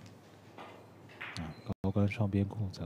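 A cue sharply clicks against a snooker ball.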